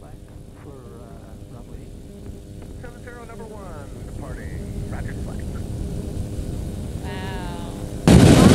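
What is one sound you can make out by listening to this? Wind roars loudly past a microphone.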